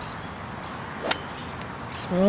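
A golf club strikes a ball with a sharp click.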